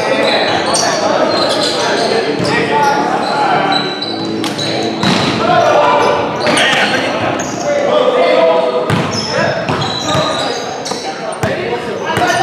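A volleyball is hit with sharp slaps that echo in a large gym.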